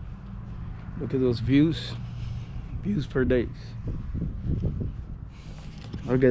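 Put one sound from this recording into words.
A man speaks casually, close to the microphone.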